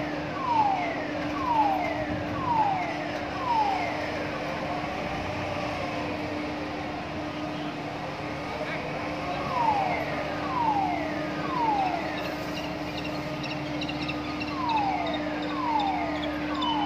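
A crane motor hums steadily.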